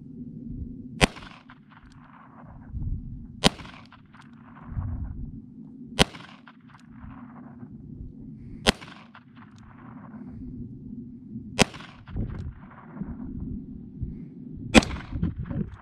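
Rifle shots crack one after another outdoors, each echoing back off distant hills.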